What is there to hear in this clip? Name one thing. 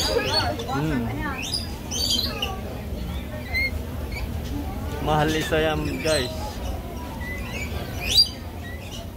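Parrots chatter and squawk close by.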